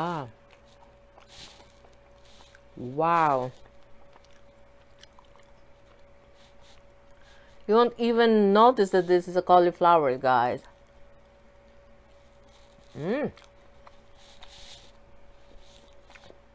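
A woman chews food close to a microphone.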